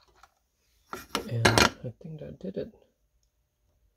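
Small metal links clink softly as fingers handle a bracelet.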